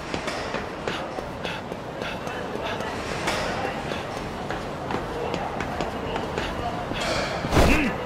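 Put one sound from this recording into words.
Footsteps run quickly up metal stairs.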